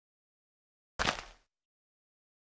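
A block breaks with a crunch.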